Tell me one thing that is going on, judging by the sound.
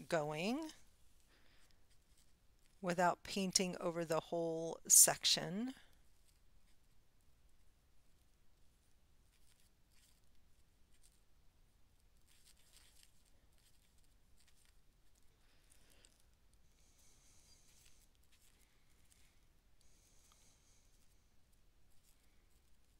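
A marker scratches softly on paper.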